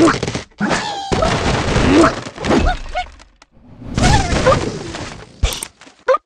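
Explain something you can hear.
Wooden blocks crash and clatter as a structure collapses.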